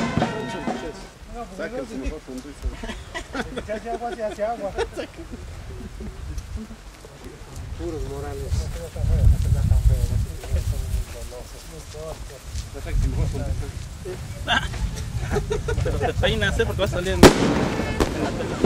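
Men talk calmly nearby outdoors.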